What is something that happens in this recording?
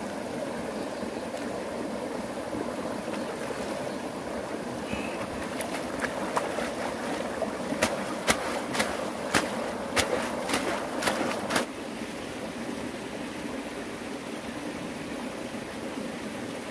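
A mountain stream rushes steadily over stones.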